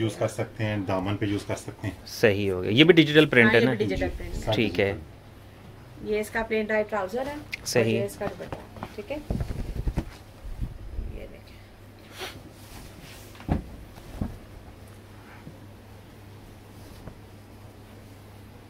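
Fabric rustles as it is unfolded and handled.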